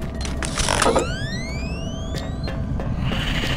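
A gun clicks and clanks as it is drawn.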